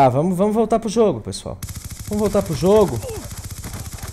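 Automatic gunfire rattles in quick bursts.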